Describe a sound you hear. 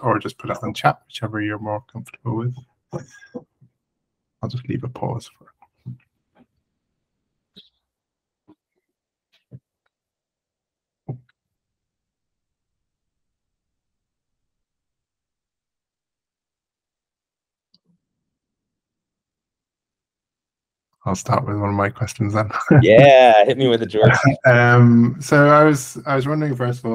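A man talks calmly over an online call, with long pauses.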